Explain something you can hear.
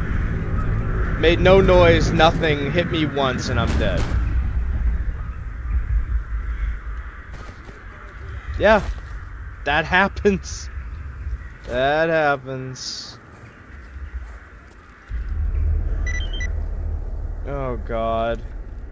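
Footsteps crunch over snow and gravel.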